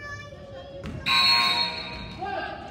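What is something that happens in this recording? A referee blows a loud, sharp whistle blast.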